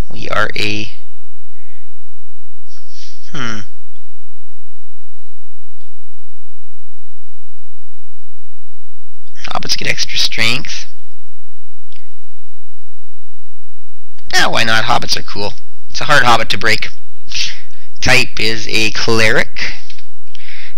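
A man talks calmly into a close microphone, in short bursts with pauses.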